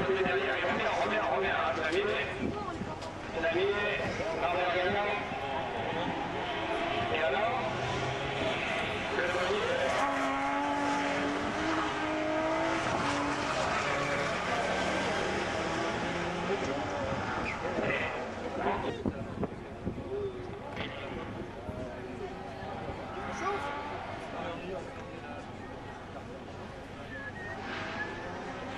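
Race car engines roar and rev on a track.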